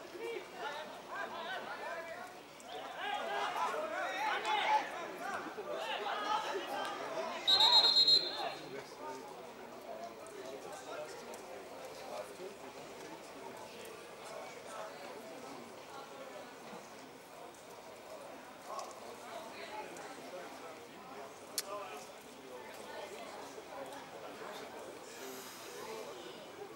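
Spectators chatter and call out nearby, outdoors.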